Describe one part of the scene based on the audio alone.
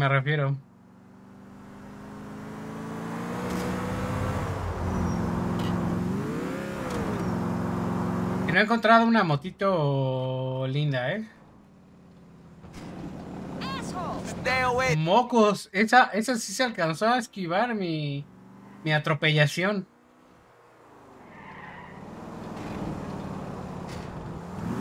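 A car engine hums and revs.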